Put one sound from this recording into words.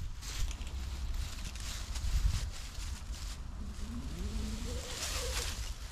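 Climbing gear clinks and rattles against a rope.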